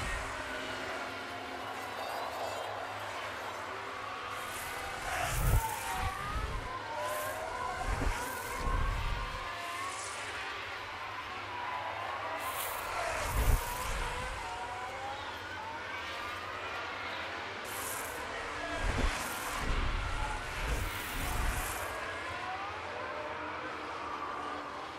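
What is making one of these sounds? Racing car engines whine loudly, rising and falling in pitch as the cars speed past.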